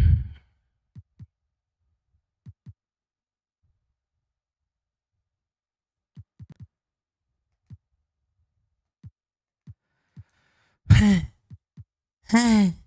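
Soft game menu blips sound now and then.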